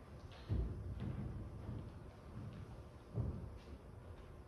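Footsteps thud on a wooden stage.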